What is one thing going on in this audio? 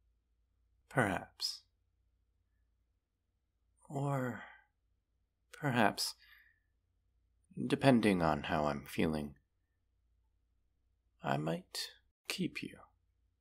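A young man speaks slowly and dramatically, close to a microphone, with long pauses.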